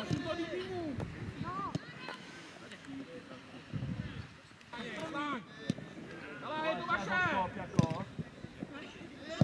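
Young players shout to each other outdoors.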